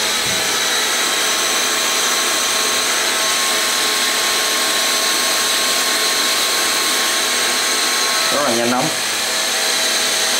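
A heat gun blows with a steady whooshing hiss.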